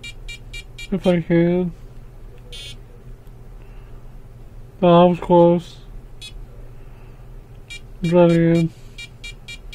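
A handheld LCD game plays a short, buzzy jingle.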